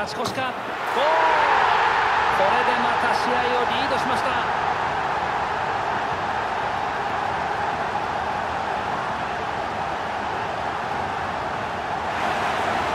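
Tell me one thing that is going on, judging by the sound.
A large crowd bursts into a loud, sustained roar of cheering.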